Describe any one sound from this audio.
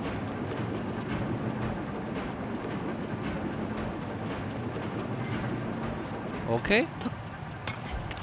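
A small cart rumbles and clatters steadily along a metal rail.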